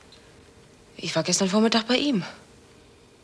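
A woman speaks urgently, close by.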